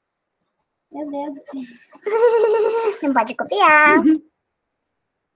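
A young girl speaks over an online call.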